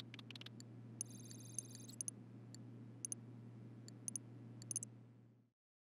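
Short electronic beeps chime as menu options are clicked.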